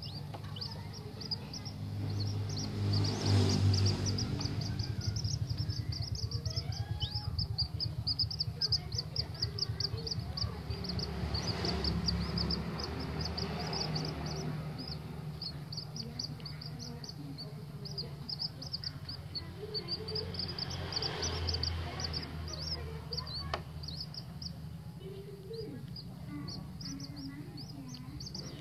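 Small chicks peep rapidly in high, thin chirps close by.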